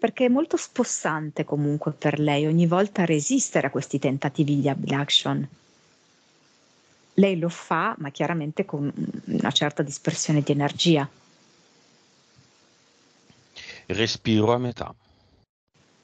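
A man speaks calmly through a headset microphone on an online call, in short bursts with pauses.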